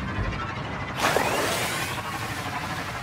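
Water splashes and sprays beneath a hover bike.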